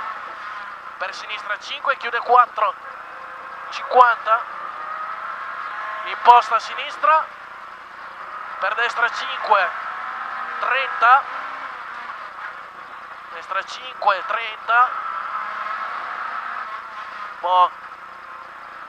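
A man reads out quickly over a helmet intercom.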